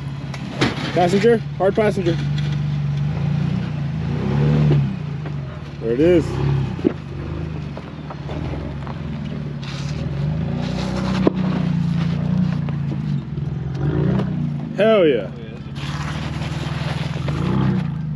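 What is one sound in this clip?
An engine rumbles low and steadily, revving now and then.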